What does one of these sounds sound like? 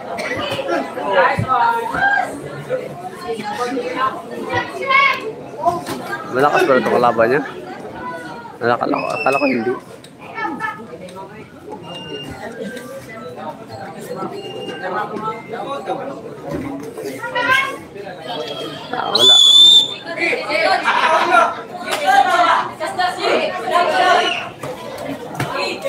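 Children shout and cheer.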